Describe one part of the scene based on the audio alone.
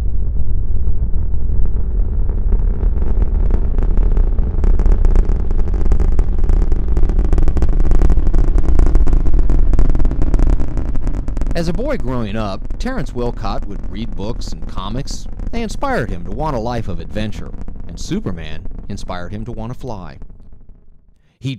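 A rocket engine roars with a deep, heavy rumble that slowly fades.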